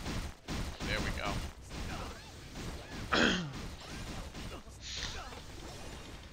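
Game sound effects of blows and slashes hit in quick succession.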